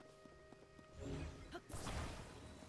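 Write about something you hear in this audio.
A shimmering magical whoosh swells loudly.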